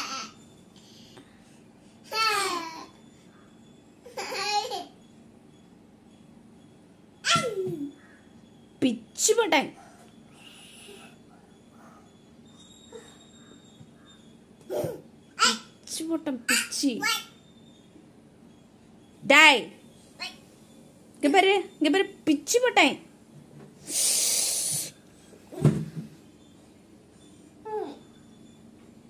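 A small child babbles and squeals close by.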